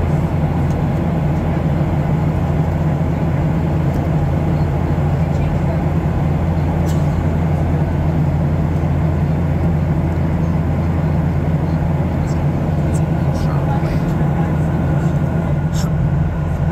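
A jet engine roars steadily, heard from inside an airliner's cabin.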